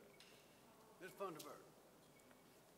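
An elderly man speaks briefly into a microphone.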